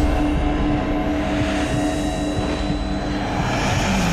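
A car drives down a street.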